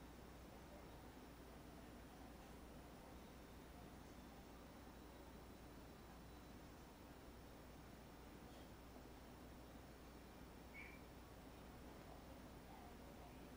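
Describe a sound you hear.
A paintbrush softly brushes across canvas.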